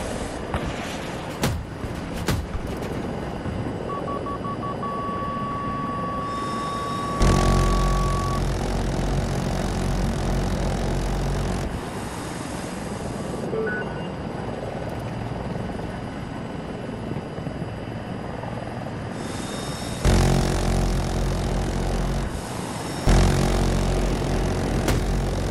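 A helicopter's rotor thumps and its engine whines steadily.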